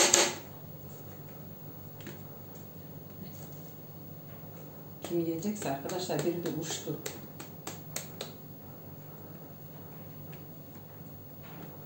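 A plastic mould taps and knocks against a wooden board.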